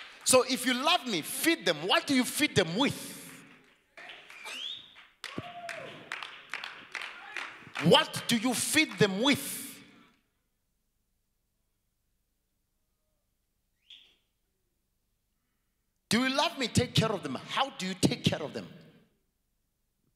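A man preaches with animation into a microphone, heard through loudspeakers in a large hall.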